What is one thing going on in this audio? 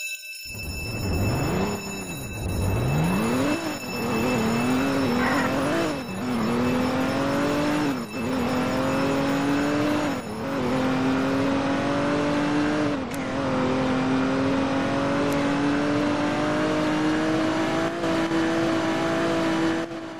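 A car engine revs up and roars as it speeds up through the gears.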